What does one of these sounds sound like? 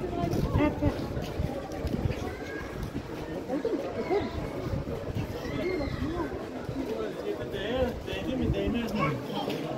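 A crowd of many people chatters and calls out, outdoors.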